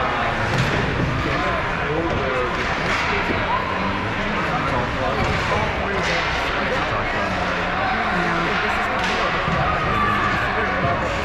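Young children call out in a large echoing rink.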